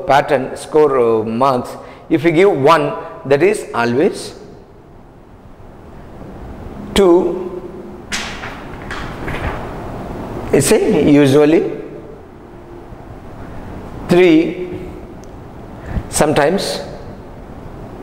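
A man speaks clearly into a close microphone, explaining at a measured pace with pauses.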